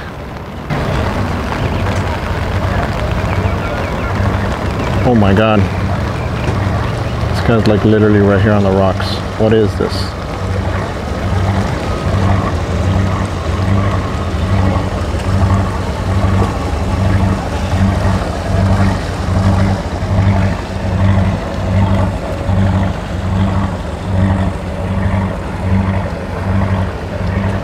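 A boat engine rumbles with a low, steady throb.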